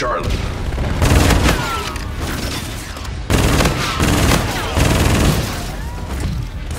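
Gunfire rattles in short, loud bursts.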